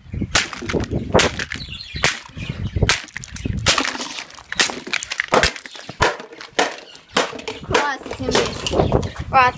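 A hammer smashes plastic toys with sharp cracking blows.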